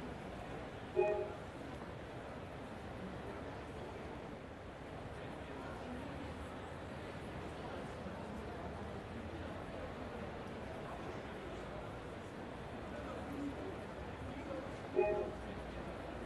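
A short notification chime rings out.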